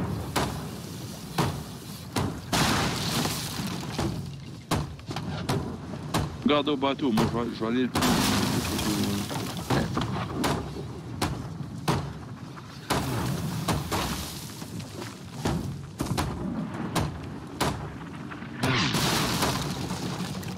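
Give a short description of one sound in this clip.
A hammer knocks sharply on wooden planks again and again.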